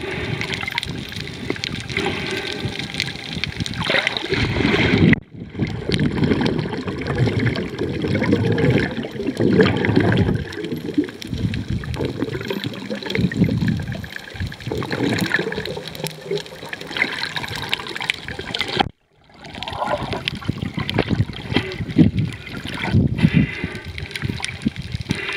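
Water rushes and bubbles, heard muffled from underwater.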